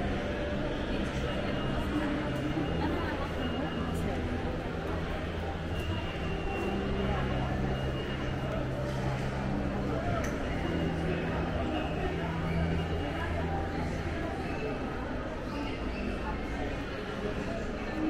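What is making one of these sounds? Many people talk and murmur in a large echoing hall.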